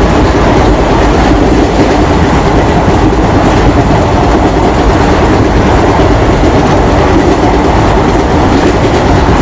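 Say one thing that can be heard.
A train rumbles steadily close by.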